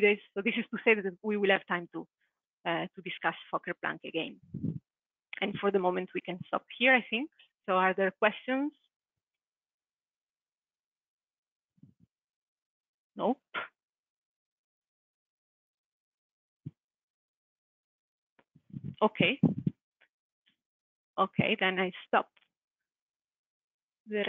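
A young woman lectures through a headset microphone, speaking in bursts with pauses.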